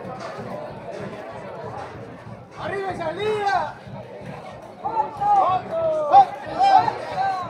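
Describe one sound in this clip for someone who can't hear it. A crowd of young men and women chatters and shouts outdoors.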